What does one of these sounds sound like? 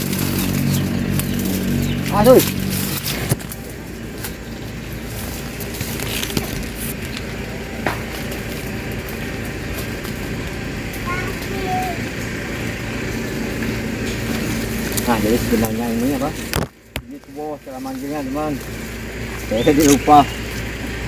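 Sugarcane stalks knock and rustle against dry leaves as they are gathered.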